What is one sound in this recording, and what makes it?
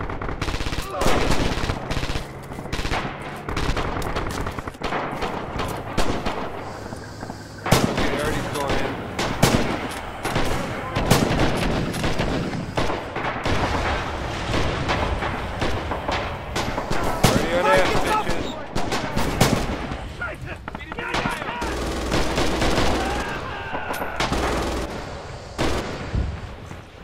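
Rifle shots crack repeatedly nearby.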